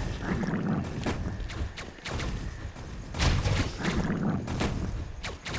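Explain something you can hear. Video game explosions thump with a low rumble.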